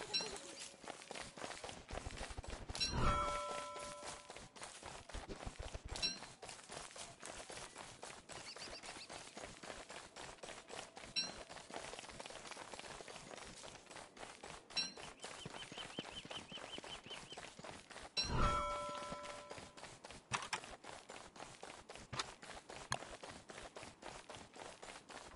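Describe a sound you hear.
Footsteps patter steadily on soft ground.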